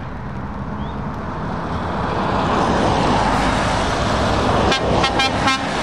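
Tyres hiss on a wet road, growing louder as a lorry passes close.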